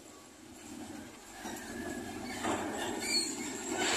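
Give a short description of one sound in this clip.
A heavy truck engine roars as the truck drives slowly past.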